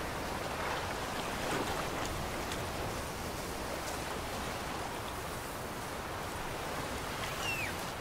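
Footsteps tread on grass.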